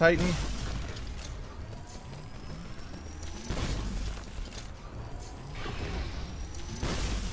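Electric weapon blasts crackle and boom in bursts.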